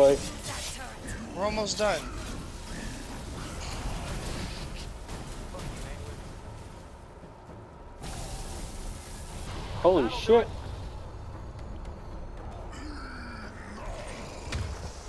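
A weapon fires crackling energy blasts.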